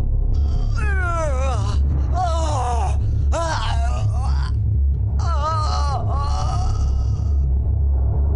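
A man cries out and wails in agony, close by.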